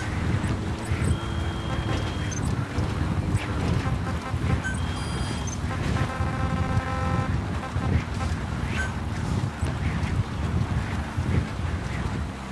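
Short electronic beeps chime as menu options are picked.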